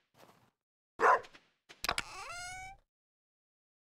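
A menu opens with a short whoosh and a rising chime.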